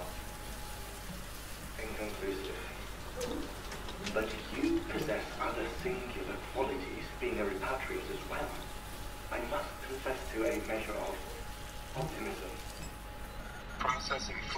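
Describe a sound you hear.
Water from a shower sprays and splashes on the floor.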